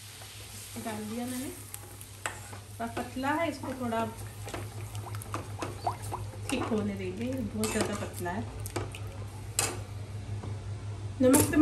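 A metal ladle scrapes and stirs in a pan.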